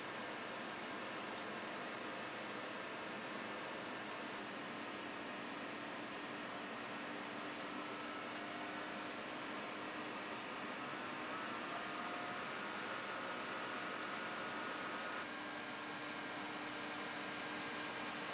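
Computer fans whir steadily.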